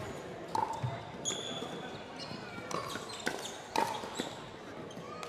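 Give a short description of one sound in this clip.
Paddles sharply pop a plastic ball back and forth.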